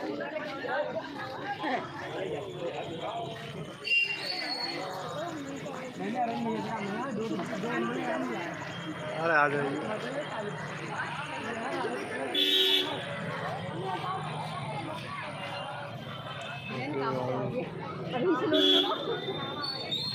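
A crowd of men chatter loudly all around outdoors.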